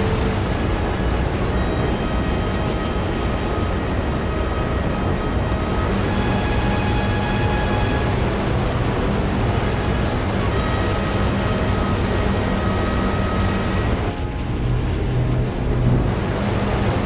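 Wind rushes past an aircraft.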